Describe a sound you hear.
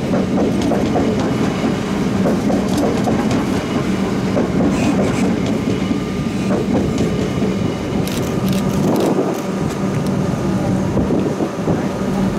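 An electric train's motor hums steadily.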